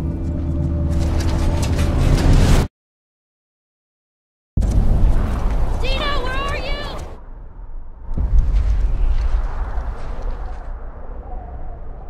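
Strong wind howls through a snowstorm.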